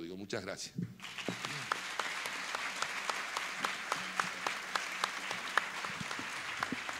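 People applaud.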